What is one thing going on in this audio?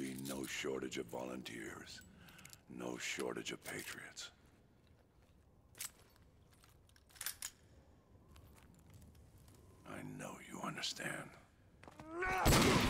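A man speaks slowly and gravely, close by.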